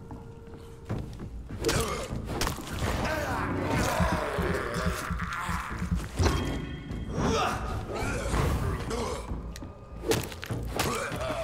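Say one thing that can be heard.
Sword blows strike and clash in a fight.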